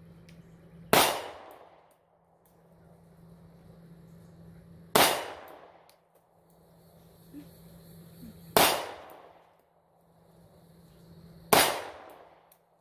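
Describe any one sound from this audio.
A pistol fires single loud shots that echo through the woods.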